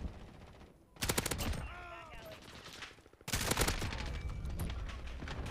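Rapid gunfire bursts ring out.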